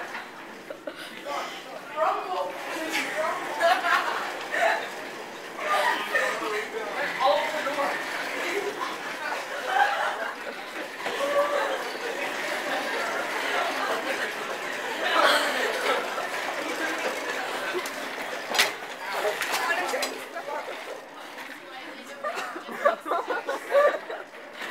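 Office chair wheels roll and rattle across a hard floor.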